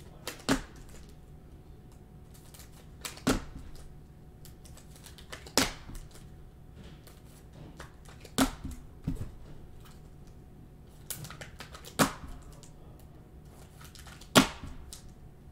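Plastic card cases click and clack against each other as they are handled.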